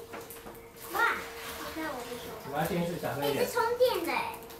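A second young girl answers close by.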